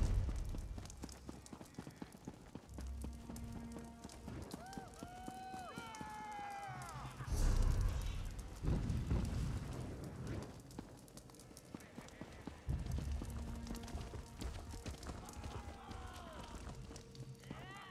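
Footsteps thud on a stone floor.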